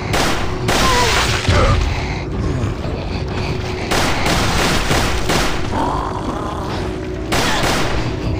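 Pistol shots fire in sharp bursts.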